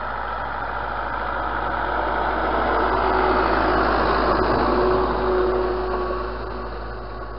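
A disc harrow scrapes and rattles through dry soil.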